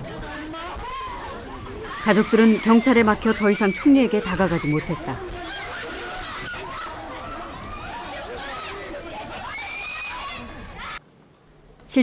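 A crowd of people shouts and clamours close by.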